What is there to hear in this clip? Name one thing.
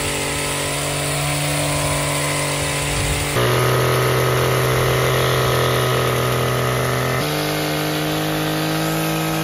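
Trimmer blades clatter as they cut through leaves.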